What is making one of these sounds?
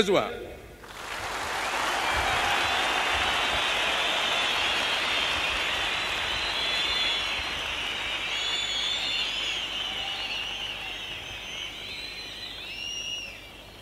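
A large crowd in a stadium applauds and cheers.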